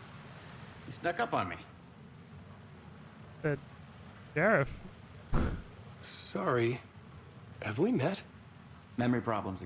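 A second man answers calmly and questioningly.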